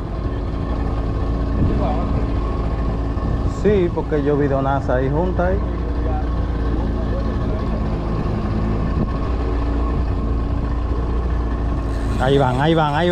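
An outboard motor drones steadily.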